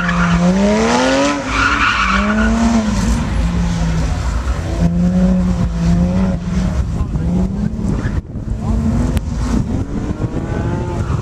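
A sports car engine revs hard and rises and falls in pitch.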